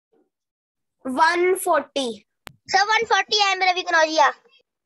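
A boy speaks with animation over an online call.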